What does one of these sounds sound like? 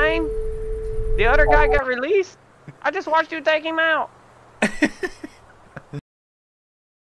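A man talks and laughs with animation into a headset microphone.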